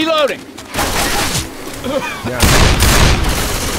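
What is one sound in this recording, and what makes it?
Zombies shriek and growl close by.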